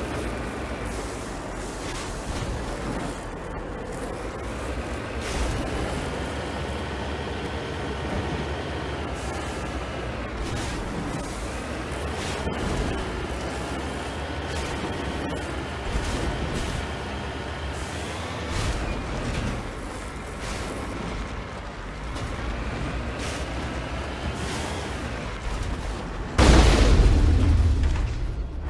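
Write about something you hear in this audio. A vehicle engine hums steadily and rises in pitch as it climbs.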